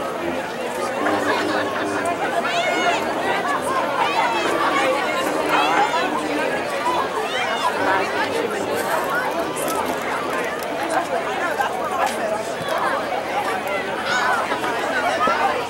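A marching band's brass horns play outdoors.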